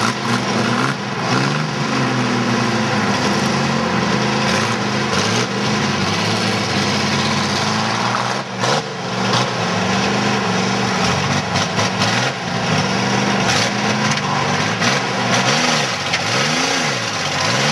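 A truck engine revs hard, rising and falling in pitch.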